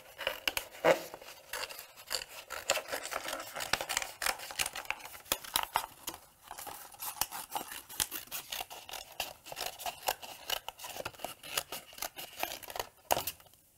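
Scissors snip through thin plastic sheet.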